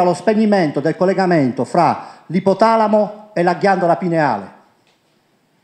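A middle-aged man speaks with animation through a microphone into a room.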